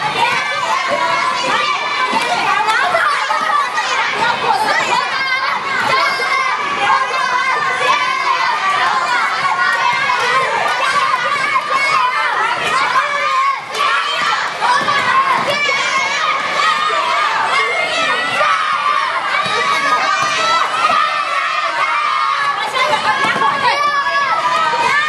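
A crowd of children chatters and shouts in a large echoing hall.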